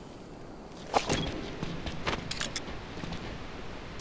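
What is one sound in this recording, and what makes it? A rifle scope clicks as it zooms in.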